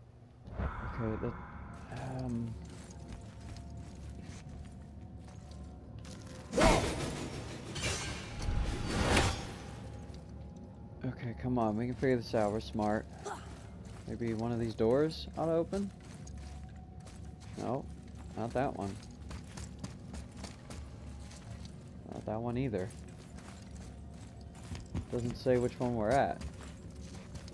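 Footsteps thud on a stone floor.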